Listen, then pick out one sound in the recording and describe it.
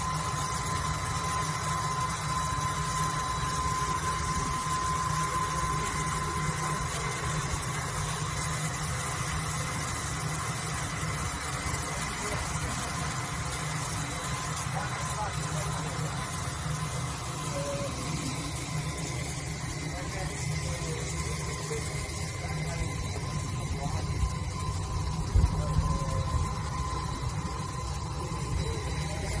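A diamond wire saw whirs as it cuts through andesite.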